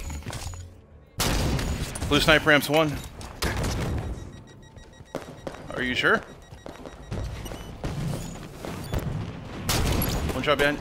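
A rifle fires loud sharp shots.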